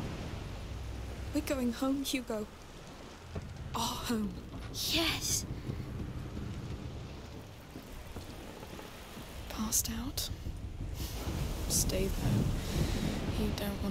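Wind blows and waves wash steadily against a boat.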